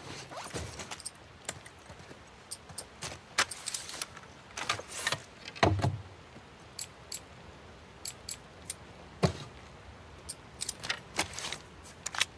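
Metal gun parts click and clack as they are handled.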